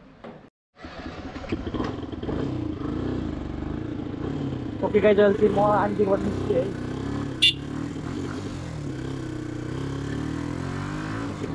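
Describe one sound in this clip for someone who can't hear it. A motorcycle engine runs and revs as the bike rides along.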